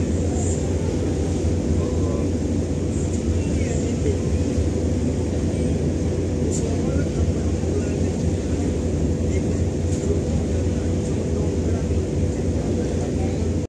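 Wind rumbles steadily outdoors over open water.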